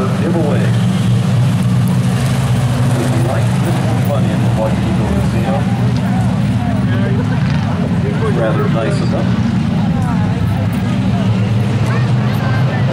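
A pack of stock cars roars around an oval track, heard from the grandstand outdoors.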